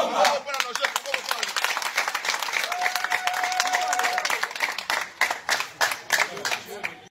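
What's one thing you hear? A group of men sings together outdoors.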